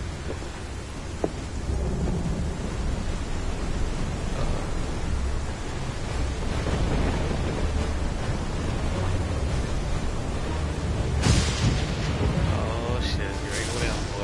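Rough sea waves surge and crash heavily.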